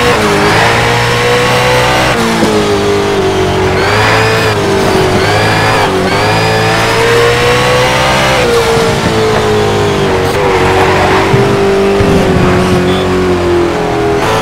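A car engine roars at high revs, its pitch rising and dropping with gear changes.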